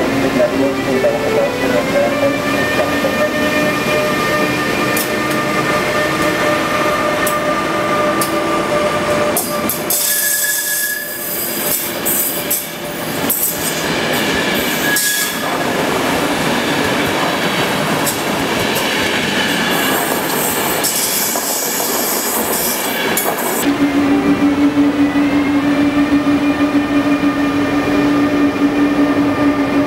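An electric locomotive whines with a steady pitched hum.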